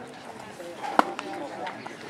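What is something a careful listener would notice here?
A bat knocks a baseball with a sharp crack.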